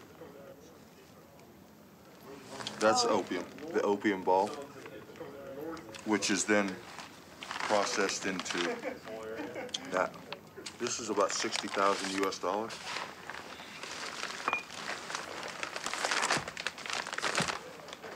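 Plastic bags rustle and crinkle as they are handled.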